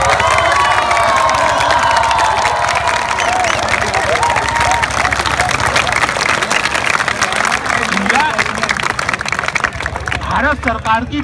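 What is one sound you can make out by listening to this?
A large crowd cheers and applauds outdoors.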